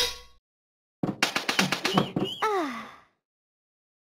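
A cartoon cat makes a high squeaky voice sound.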